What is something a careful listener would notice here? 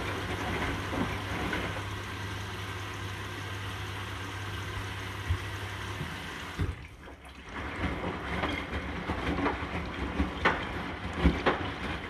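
Water sloshes and wet laundry thumps inside a washing machine drum.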